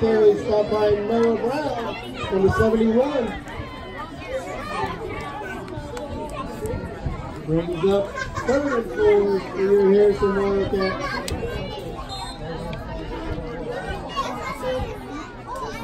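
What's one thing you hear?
A crowd of people chatter and call out in the distance.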